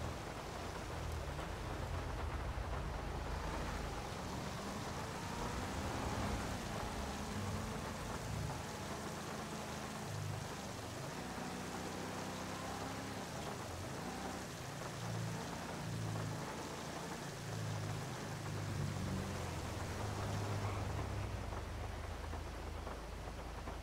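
An old car engine hums low and rises and falls in pitch as the car drives.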